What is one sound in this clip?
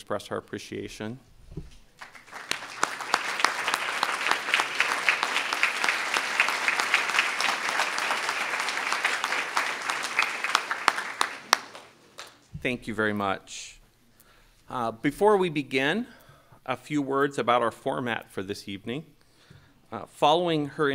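A middle-aged man speaks calmly into a microphone in a large hall.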